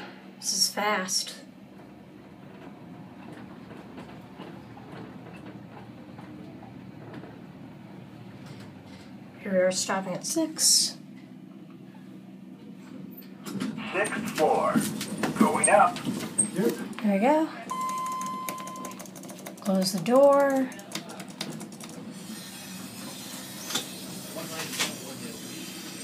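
An elevator hums steadily as it rides.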